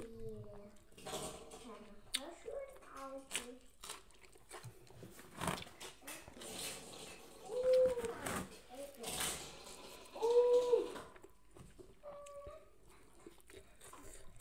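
A woman chews crunchy food loudly.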